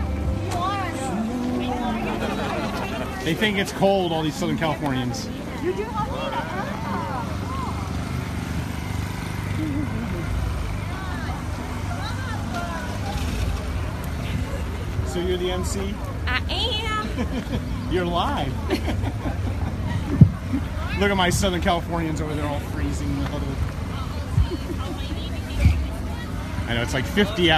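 A crowd of people chatter outdoors.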